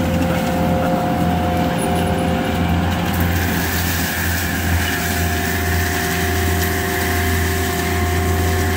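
A diesel engine roars steadily nearby.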